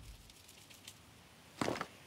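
A large boulder rolls and rumbles over the ground.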